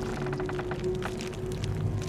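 A fire crackles and pops close by.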